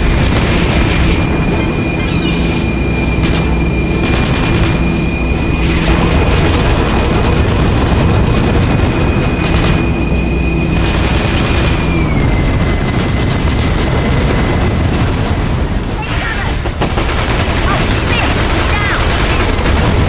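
Gunfire rattles.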